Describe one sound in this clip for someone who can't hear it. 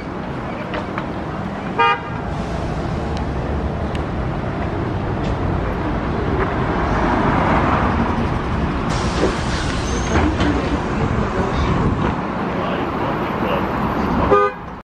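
A bus engine rumbles nearby as the bus pulls away from the kerb.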